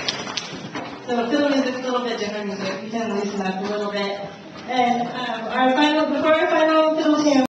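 A string ensemble with guitars plays a gentle tune.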